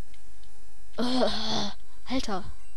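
A retro video game creature lets out a harsh electronic growl.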